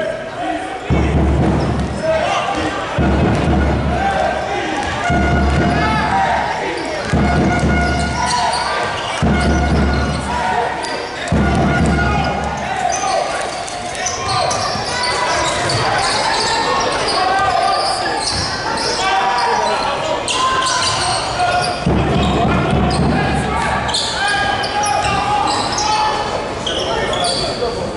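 A crowd of spectators murmurs and cheers in a large echoing hall.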